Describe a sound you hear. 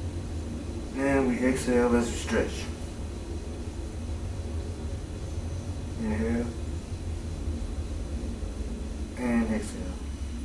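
A man speaks calmly and briefly, close by.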